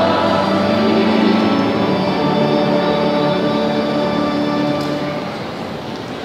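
A large congregation sings together in an echoing hall and stops.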